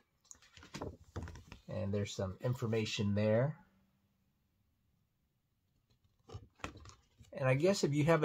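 Paper rustles as a card is handled.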